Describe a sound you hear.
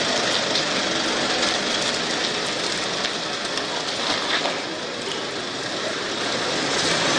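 A van engine hums as the van drives slowly away.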